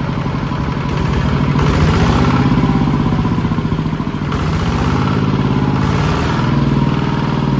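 A man talks nearby over the engine.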